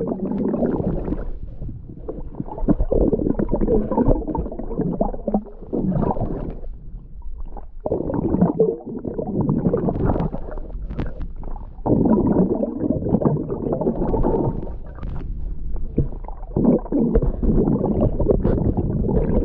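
Water rumbles and sloshes, muffled as if heard underwater.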